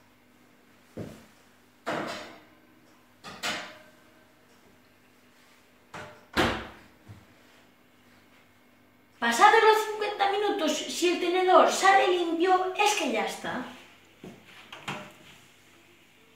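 An oven door clanks open and shut.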